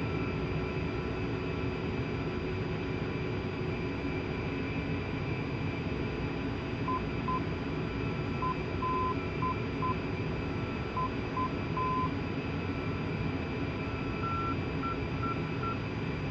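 A jet engine hums and whines steadily at idle.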